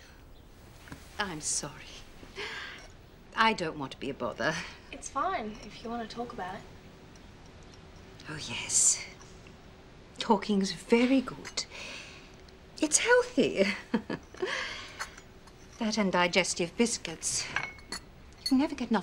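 Several women talk calmly close by, taking turns.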